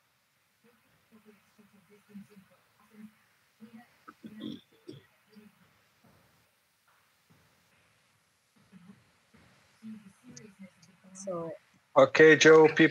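A woman speaks calmly and quietly over an online call.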